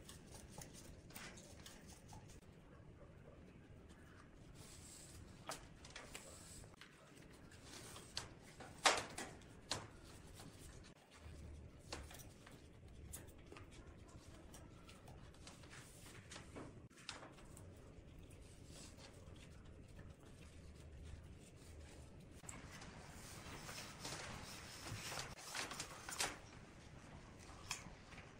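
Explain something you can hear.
A cable rustles and scrapes as it is wound around metal blocks.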